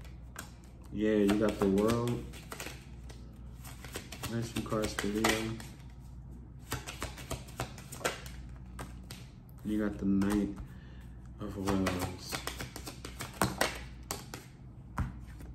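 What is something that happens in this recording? Plastic wrapping crinkles and rustles in a man's hands.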